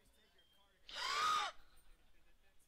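A video game creature lets out a short, shrill cry.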